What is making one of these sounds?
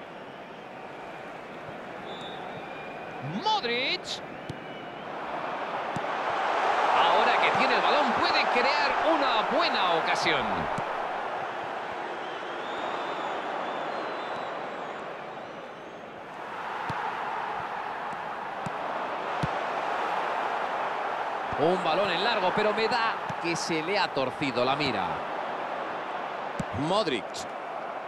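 A large stadium crowd roars, swelling loudly and then fading.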